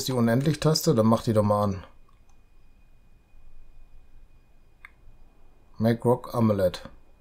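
A middle-aged man talks calmly into a close microphone, pausing between phrases.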